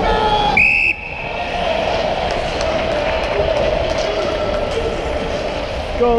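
Skate blades scrape and carve across ice in a large echoing hall.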